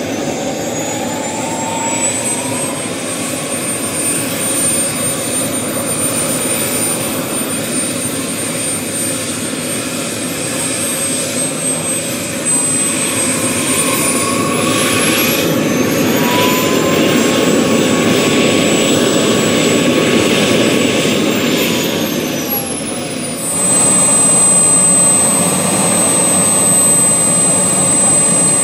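A small jet turbine whines and roars nearby, its pitch rising and falling.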